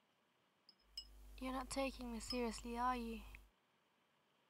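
A young woman asks a question in a flat, quiet voice.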